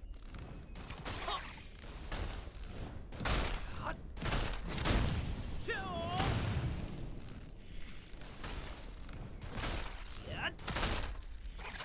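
Weapon strikes and magic blasts hit a giant spider.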